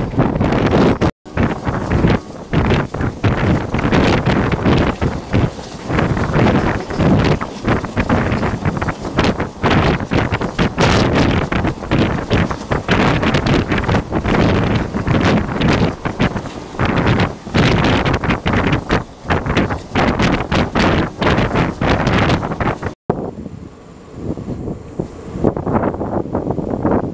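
A train rumbles and clatters loudly along the tracks.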